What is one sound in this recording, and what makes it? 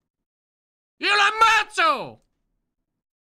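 A man shouts loudly and close into a microphone.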